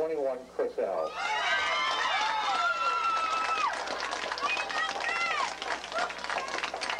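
A crowd of young people cheers and shouts together.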